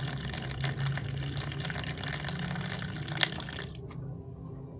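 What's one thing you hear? Water trickles from a strainer into a basin of water.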